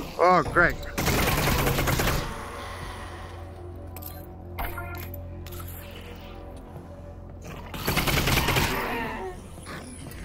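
A gun fires rapid shots that echo loudly.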